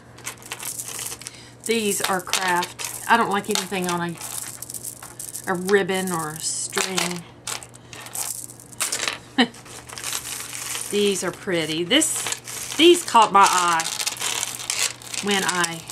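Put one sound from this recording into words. Strings of beads clink and rattle against each other.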